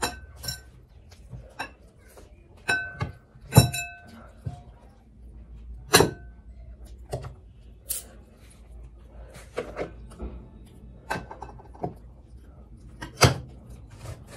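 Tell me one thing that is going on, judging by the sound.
Glass bowls clink and knock against each other.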